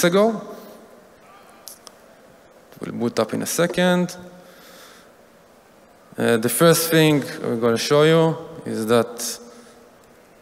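A man speaks calmly through a microphone, with pauses.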